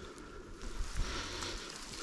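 A hand brushes over rough bark.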